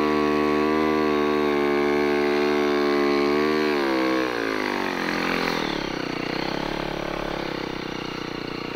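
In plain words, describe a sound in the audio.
A snow bike engine revs loudly, then drops in pitch as it slows.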